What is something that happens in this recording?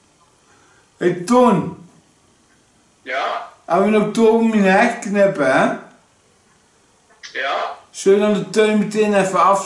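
A middle-aged man speaks calmly and close by, in short bursts.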